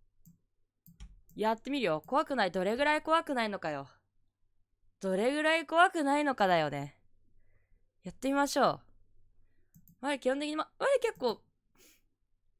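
A young woman speaks brightly and animatedly into a close microphone.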